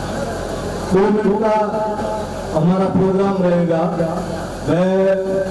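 A man speaks loudly through a microphone and loudspeakers, outdoors.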